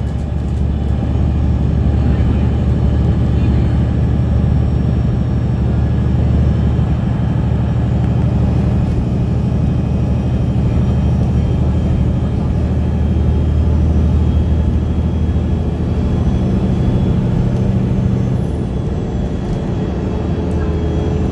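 Tyres roar on the road surface.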